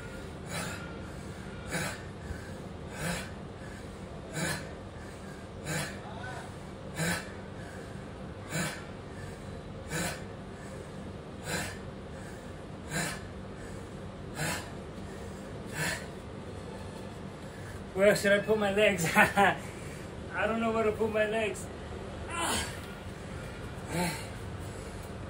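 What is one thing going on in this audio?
A man exhales sharply in a steady rhythm.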